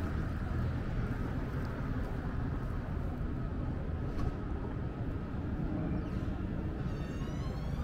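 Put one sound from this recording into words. A truck engine idles nearby with a low, steady rumble.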